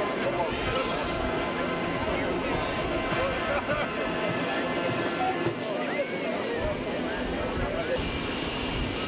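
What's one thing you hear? Children's voices call out excitedly in a crowd.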